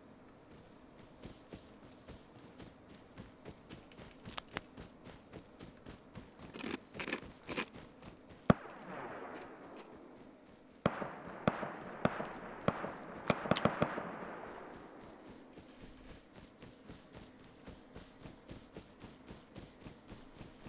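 Footsteps thud quickly and steadily over grass.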